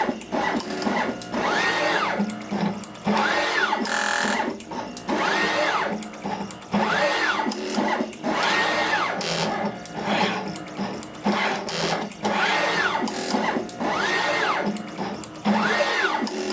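A machine clicks and clacks sharply in a quick rhythm.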